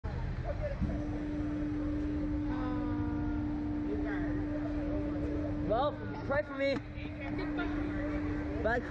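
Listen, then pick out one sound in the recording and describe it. A young girl screams and laughs close by.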